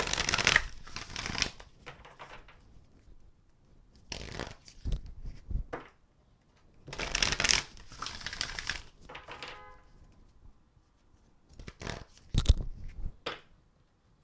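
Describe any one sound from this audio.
Playing cards riffle and slap together as a deck is shuffled by hand.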